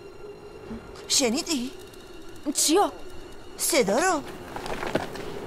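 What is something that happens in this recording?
A boy speaks up with surprise.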